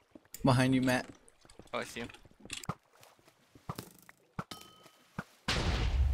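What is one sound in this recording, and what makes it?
A pickaxe chips at stone blocks with short taps.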